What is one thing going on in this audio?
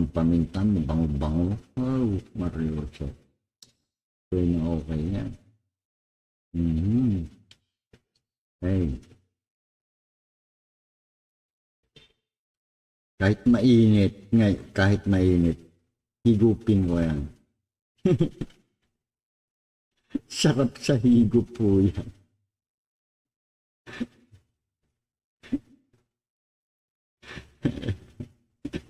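A middle-aged man speaks calmly and close to a microphone, in bursts with pauses.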